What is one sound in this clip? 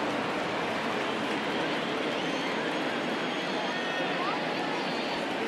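A large crowd murmurs steadily in a stadium.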